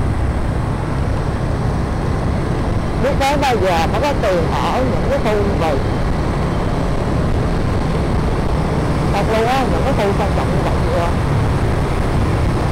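Wind buffets loudly against a moving motorbike.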